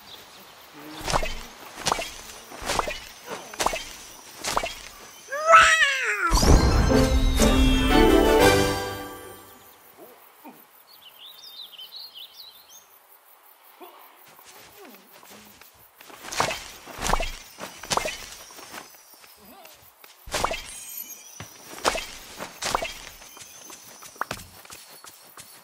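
A shovel digs into soft soil with repeated dull thuds.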